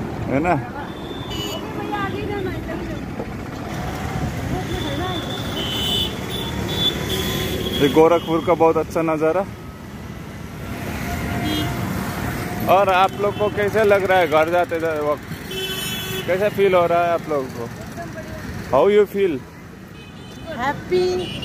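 Young women talk close by in a casual way.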